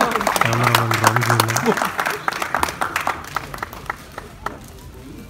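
An audience claps in a large hall.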